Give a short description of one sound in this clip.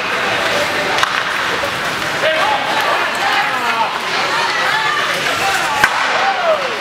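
A hockey stick cracks against a puck.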